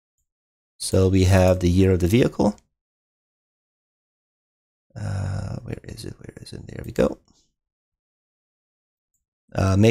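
A man speaks calmly and closely into a microphone, in short bursts.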